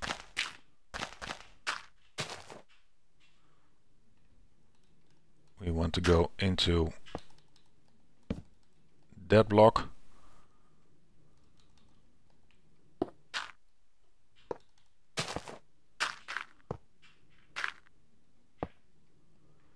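Blocks are placed with short soft taps.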